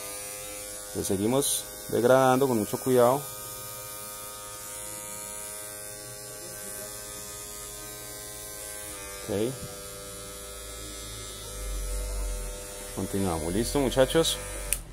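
Electric hair clippers buzz steadily close by.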